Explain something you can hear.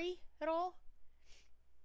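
A young woman exclaims briefly into a close microphone.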